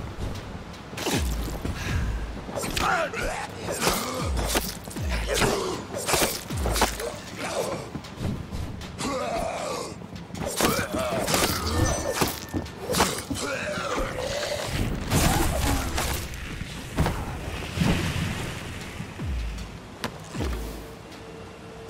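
Heavy blows strike in a fight.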